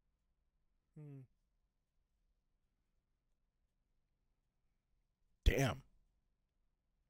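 A man briefly murmurs close to a microphone.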